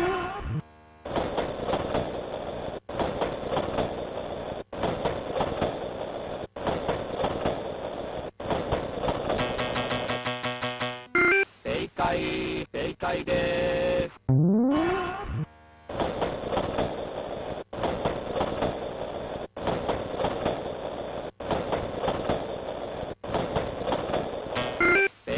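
A train rumbles past with steady, rhythmic clattering.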